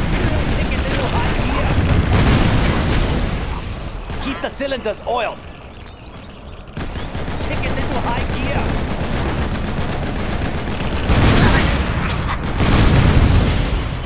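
Cannons fire in quick bursts.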